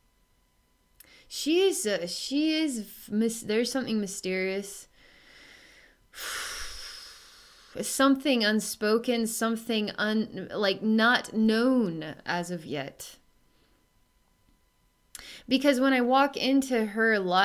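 A woman speaks calmly and softly, close to a microphone.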